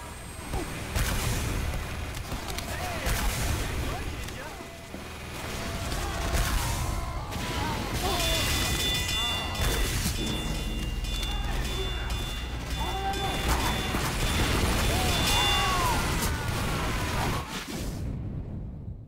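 Gunshots and explosions go off in rapid bursts.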